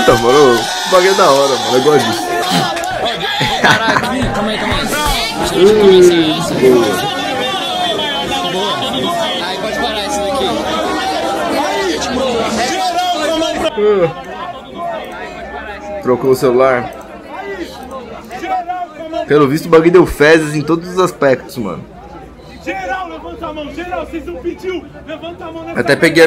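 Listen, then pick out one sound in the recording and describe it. A young man raps loudly over a crowd.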